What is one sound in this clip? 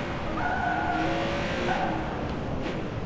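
A sports car engine revs as the car drives.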